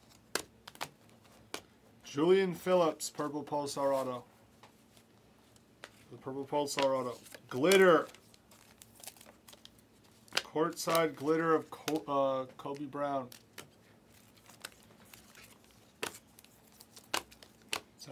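Cardboard cards rustle and slide in a man's hands.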